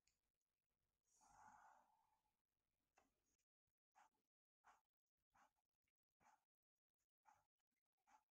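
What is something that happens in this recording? A marker pen squeaks in short strokes across paper.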